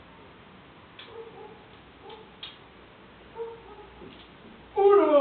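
A revolver clicks as it is handled.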